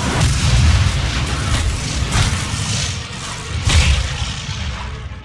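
A monster snarls and roars loudly, then the noise fades away.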